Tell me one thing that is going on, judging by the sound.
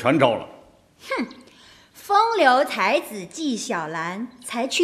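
A woman speaks nearby in a lively, teasing tone.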